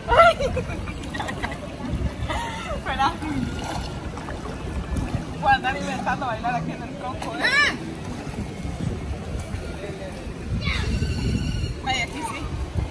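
Young women talk and laugh with animation close by, outdoors.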